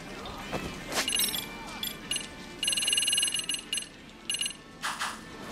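Game menu sounds chime and click as items are scrolled through.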